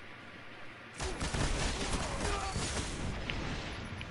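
Gunshots crack rapidly.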